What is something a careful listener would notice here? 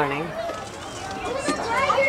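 A young girl chatters excitedly nearby.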